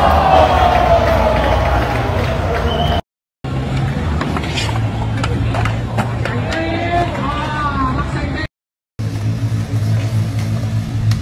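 Skateboard wheels roll and clatter on concrete.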